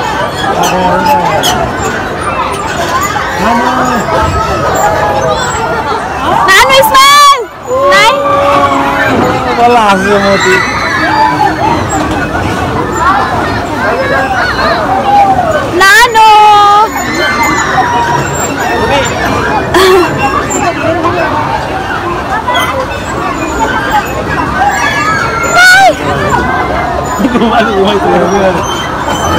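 Many young children chatter and shout all around.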